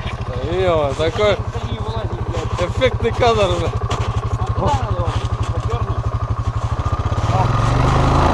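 A quad bike engine idles with a steady putter.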